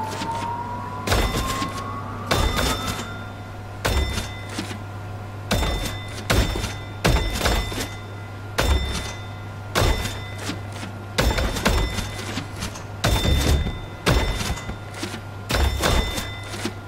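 A hammer bonks down on toy figures in quick, regular hits.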